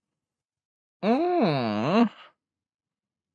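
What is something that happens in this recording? A young man exclaims with a long, sliding, wavering voice close to a microphone.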